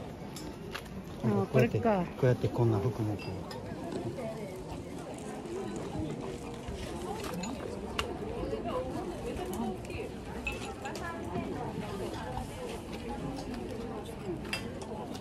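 A crowd of men and women murmur and chat nearby outdoors.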